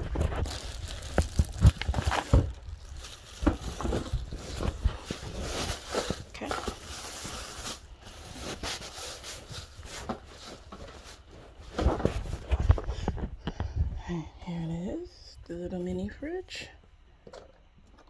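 Handling knocks and bumps sound close by.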